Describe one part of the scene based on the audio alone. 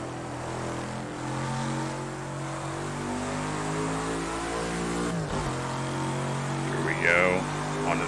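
A racing car engine drones steadily, its pitch rising as it accelerates.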